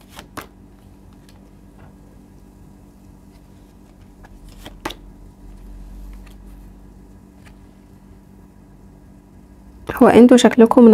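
Cards are laid down on a table with soft taps and slides.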